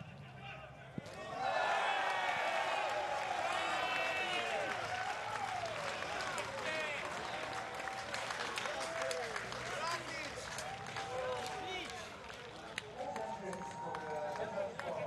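A crowd cheers loudly outdoors.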